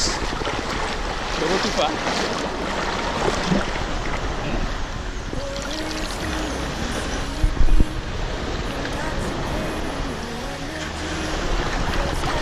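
Water splashes around a man's hands.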